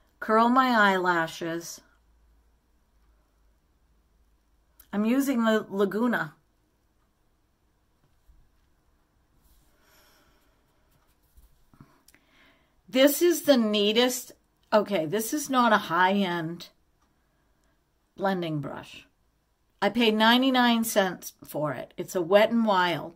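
An elderly woman talks calmly and close by, in bursts with pauses.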